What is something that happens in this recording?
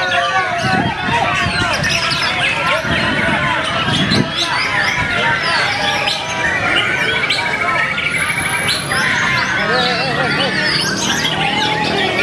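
A songbird sings loud, busy chirping phrases close by.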